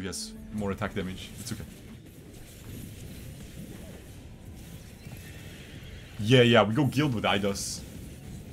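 A young man talks through a microphone with animation.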